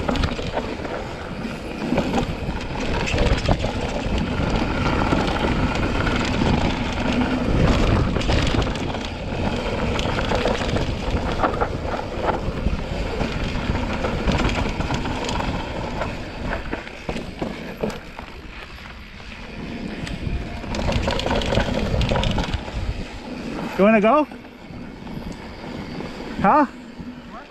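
A bicycle frame rattles over bumps.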